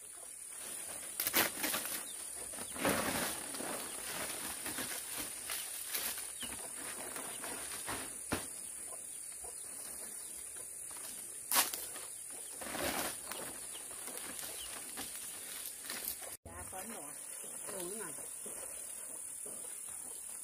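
Large palm leaves rustle and swish as they are lifted onto a frame.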